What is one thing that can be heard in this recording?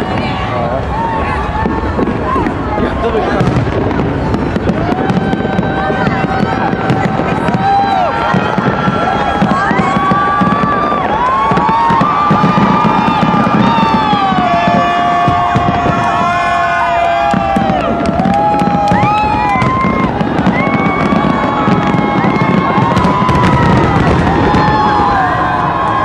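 Fireworks boom and crackle overhead.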